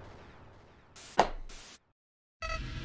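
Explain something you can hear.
A loud burst of static hisses briefly.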